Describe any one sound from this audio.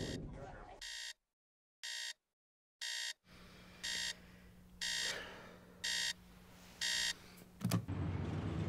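An alarm clock beeps in a steady repeating rhythm.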